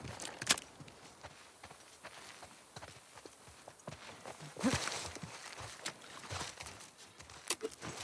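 Footsteps crunch on dirt and gravel outdoors.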